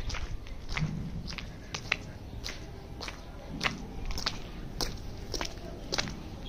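Footsteps crunch on gravelly ground at a steady walking pace.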